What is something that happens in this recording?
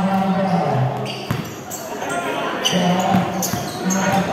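A basketball is dribbled on a concrete court.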